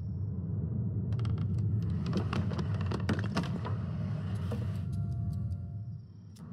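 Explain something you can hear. Small objects slide and clatter along a tilting shelf.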